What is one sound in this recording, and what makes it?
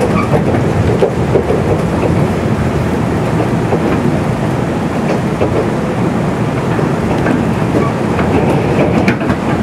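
Wheels clatter over rail joints.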